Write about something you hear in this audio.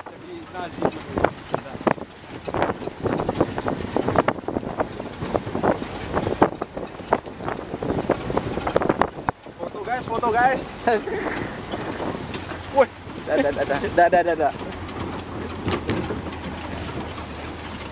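A jeep engine rumbles and rattles over a bumpy gravel track.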